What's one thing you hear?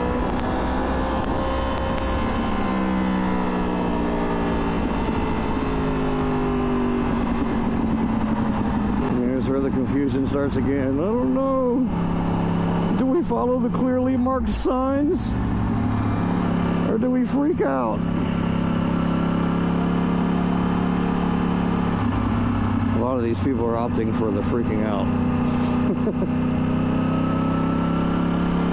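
A motorcycle engine hums steadily, rising and falling in pitch.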